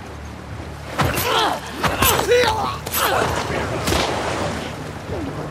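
A man cries out and groans in a close struggle.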